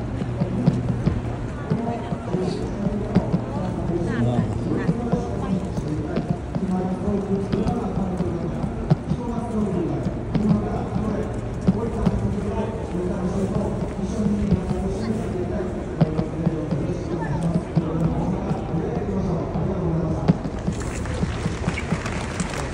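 A crowd of people chatters outdoors in the street.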